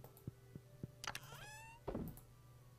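A short chime rings as a menu opens.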